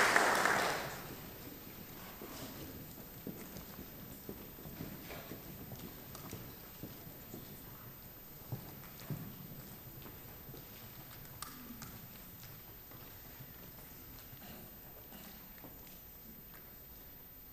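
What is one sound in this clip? Footsteps tap softly on a wooden stage.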